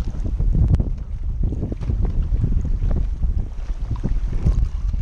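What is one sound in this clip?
Choppy water splashes and laps close by.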